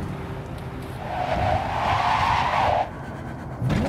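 Tyres screech as a car skids to a stop.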